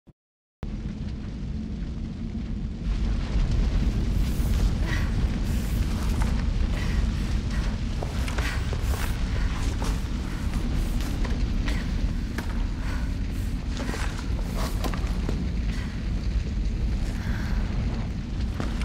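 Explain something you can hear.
A deep rumble drones steadily.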